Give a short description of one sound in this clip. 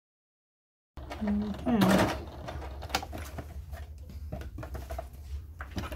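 A sewing machine hums and stitches steadily.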